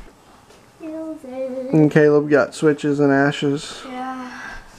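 A boy talks and laughs close by.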